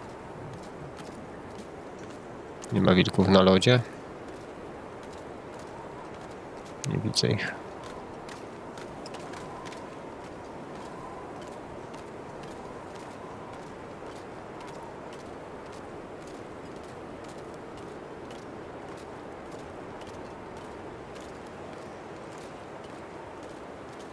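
Footsteps crunch steadily on ice.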